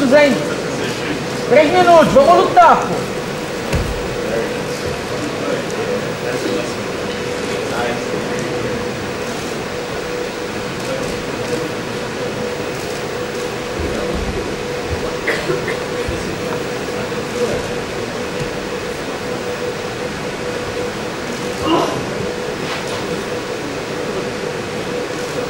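Two wrestlers grapple, their jackets rustling and bodies thumping on a mat.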